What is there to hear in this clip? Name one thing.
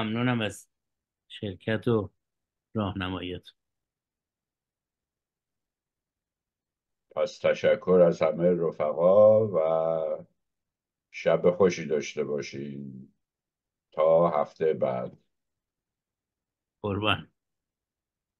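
An elderly man speaks calmly over an online call, in bursts with pauses.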